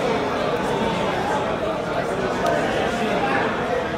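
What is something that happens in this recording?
A card is laid down with a soft tap.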